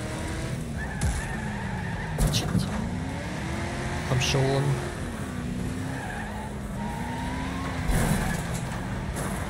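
Cars crash and bang into each other with metal crunching.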